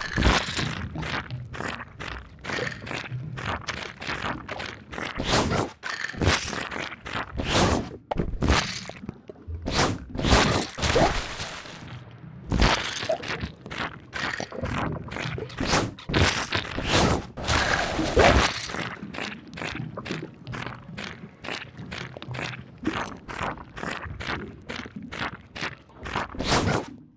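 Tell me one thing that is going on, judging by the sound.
Big bird feet slap and clatter quickly on hard ground.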